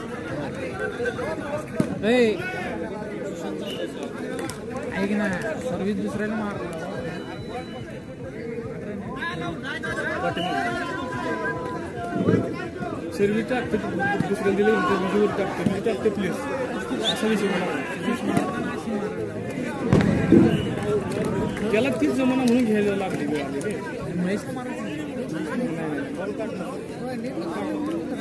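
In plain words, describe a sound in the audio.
A crowd of men chatter and shout outdoors.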